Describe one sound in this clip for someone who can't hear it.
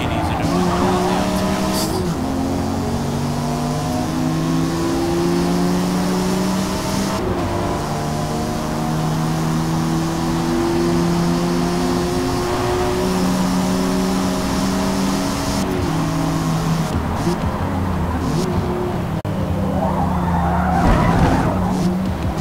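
A car engine revs hard, rising in pitch through each gear and dropping at every gear change.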